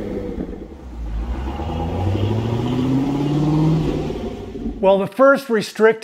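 A sports car drives past outdoors with a rising exhaust rumble.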